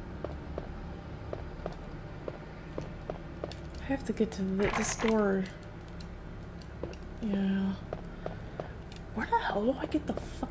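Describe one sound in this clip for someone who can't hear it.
Footsteps tap steadily on a hard floor in an echoing corridor.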